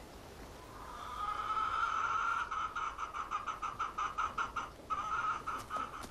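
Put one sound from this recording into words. Hens cluck.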